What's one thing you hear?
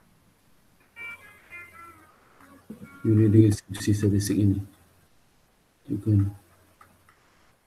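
A man speaks calmly through a computer microphone, in short bursts.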